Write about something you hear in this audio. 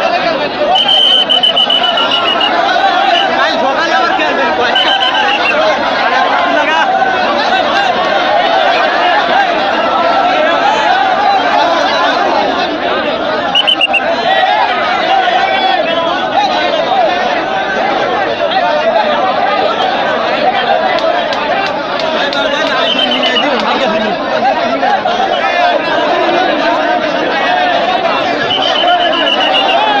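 Men shout and call out close by.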